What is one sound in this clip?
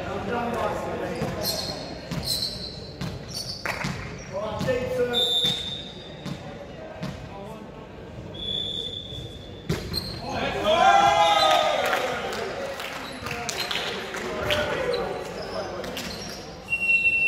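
A volleyball smacks off hands with sharp thuds.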